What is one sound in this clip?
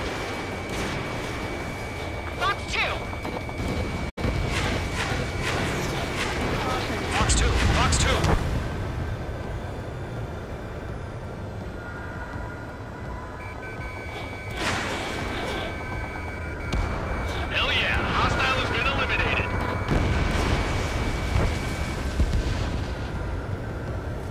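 A jet engine roars steadily, swelling at times.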